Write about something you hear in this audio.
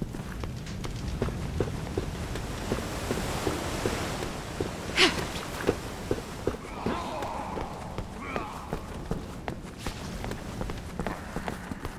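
Footsteps crunch quickly on stone.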